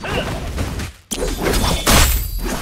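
A fiery blast bursts loudly.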